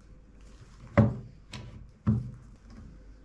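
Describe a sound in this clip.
Wood knocks against wood on a workbench.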